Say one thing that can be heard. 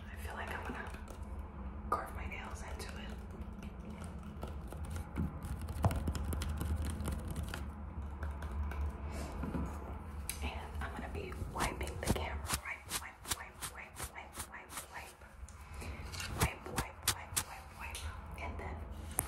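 Fingernails tap and scratch on an apple's skin.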